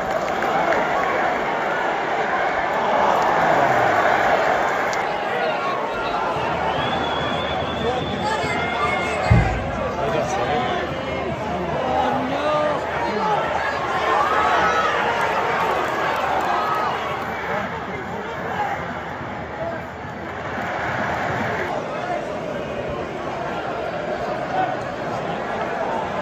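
A large football stadium crowd chants and cheers in an open-air stadium.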